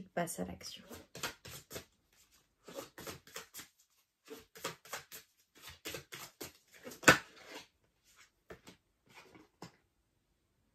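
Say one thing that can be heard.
Playing cards shuffle and tap with quick crisp clicks.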